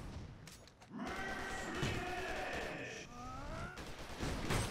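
Sparks crackle and zap in quick bursts.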